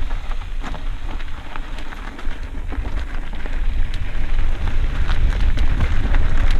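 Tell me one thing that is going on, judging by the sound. Wind buffets past the rider outdoors.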